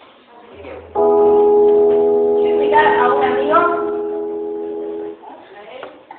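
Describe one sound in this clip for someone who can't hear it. A keyboard plays sustained chords loudly through speakers.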